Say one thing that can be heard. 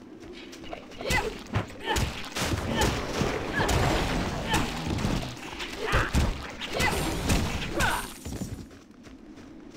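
Blows and magic blasts crash rapidly in a fight.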